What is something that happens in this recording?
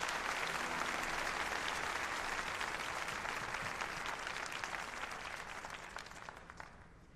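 A crowd applauds in a large hall, then the clapping slowly fades.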